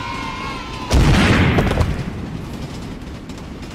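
A truck crashes to the ground with a loud thud.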